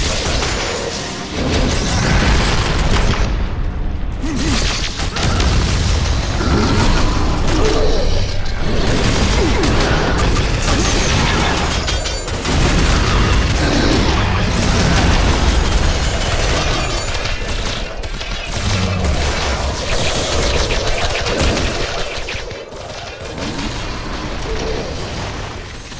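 Video game combat effects crackle and blast.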